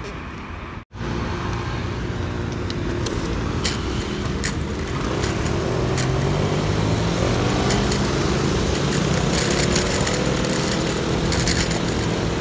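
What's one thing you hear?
Tyres of an electric kick scooter hiss on wet asphalt.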